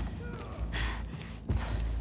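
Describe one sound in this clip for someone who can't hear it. A young woman groans in pain.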